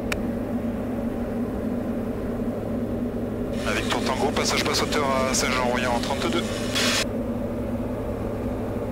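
A small plane's engine drones steadily inside the cabin.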